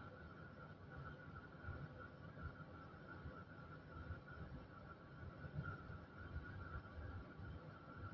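A tram's electric motor hums steadily while standing still.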